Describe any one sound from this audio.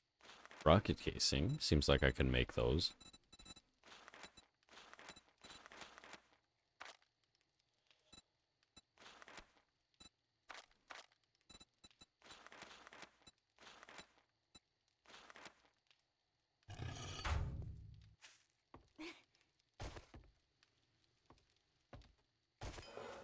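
A young man talks into a microphone with animation, close up.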